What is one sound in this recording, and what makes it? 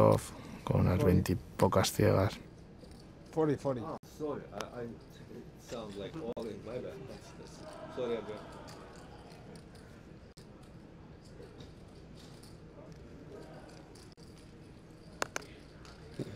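Poker chips click softly together.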